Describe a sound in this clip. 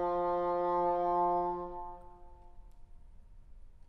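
An oboe holds a long note that fades and rings out in a large echoing hall.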